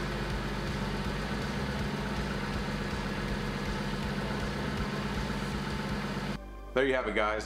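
A car engine idles with a steady, deep exhaust rumble.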